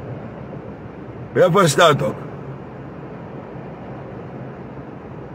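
A car engine hums steadily inside a car.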